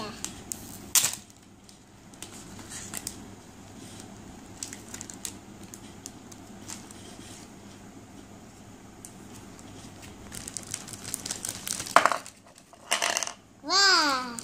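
A plastic bag crinkles and rustles in handling.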